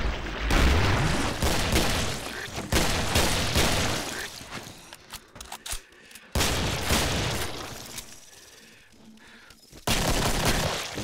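Gunshots fire rapidly and boom with echoing blasts.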